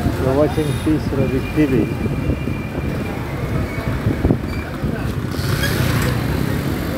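A motorbike engine rumbles steadily while riding along.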